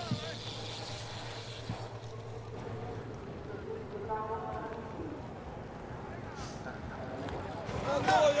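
Bicycle tyres crunch over a dirt track.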